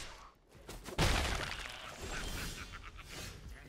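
A short digital fanfare swells and fades away.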